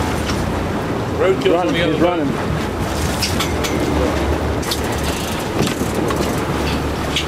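Waves splash and slap against the hull of a moving boat.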